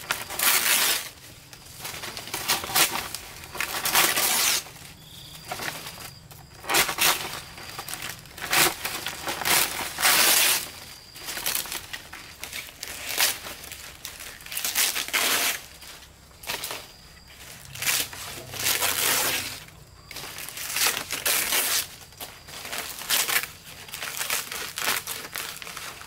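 Dry palm leaves rustle and swish as they are handled.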